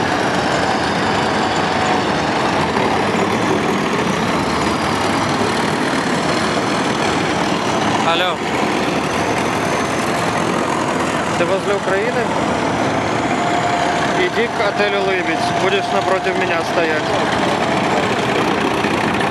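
Tracked armoured vehicles with diesel engines rumble past.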